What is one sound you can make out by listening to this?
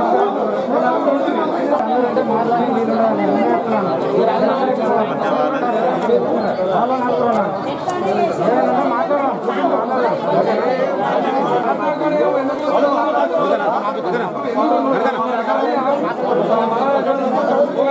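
A crowd of men and women talk loudly over one another outdoors.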